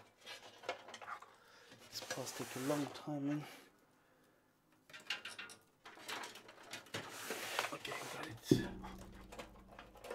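A metal case knocks and scrapes on a wooden desk.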